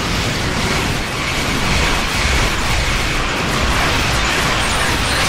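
Game weapon beams fire and crackle steadily.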